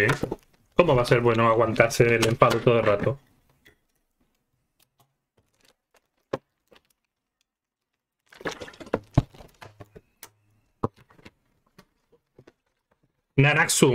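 A plastic bottle crinkles in a man's hands.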